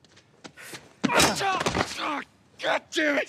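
A man grunts as he falls to the ground.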